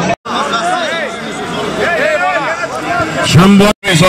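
A middle-aged man calls out loudly close by.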